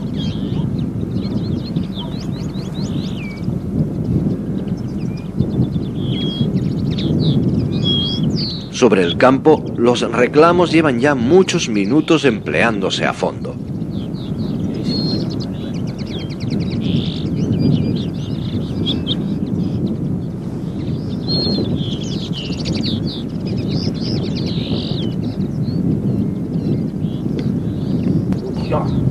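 Small birds chirp and twitter nearby.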